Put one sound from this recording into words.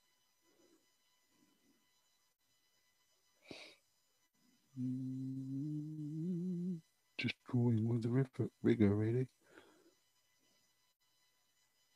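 A brush dabs and strokes softly on paper.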